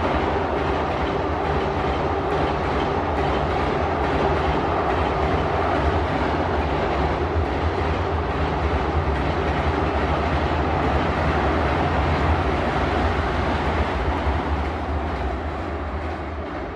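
A passenger train rumbles and rattles across a bridge, fading toward the end.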